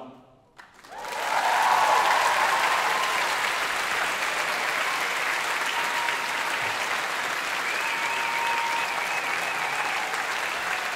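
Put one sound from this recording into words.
A large crowd applauds and cheers loudly in a big echoing hall.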